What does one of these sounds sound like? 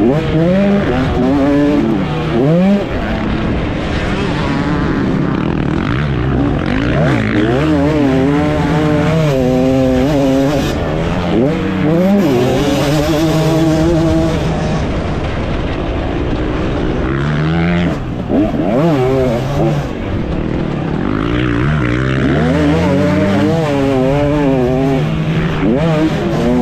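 A dirt bike engine revs hard up close, rising and falling as gears change.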